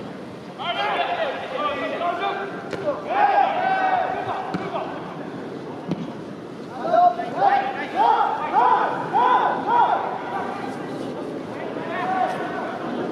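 Young men shout to each other across an open stadium.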